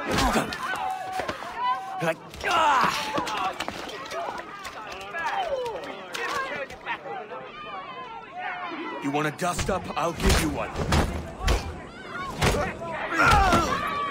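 A man grunts as he throws punches.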